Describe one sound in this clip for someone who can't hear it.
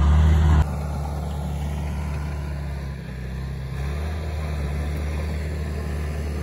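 A diesel bulldozer engine idles with a steady low rumble nearby.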